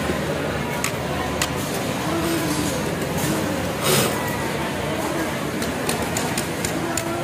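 A sewing machine runs with a rapid, steady clatter.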